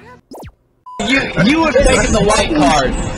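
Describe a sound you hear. Two men laugh loudly.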